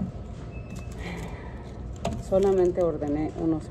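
A paper wrapper crinkles in a woman's hands.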